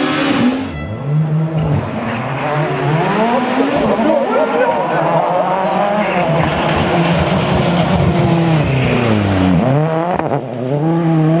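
A rally car engine revs hard as the car approaches and passes close by.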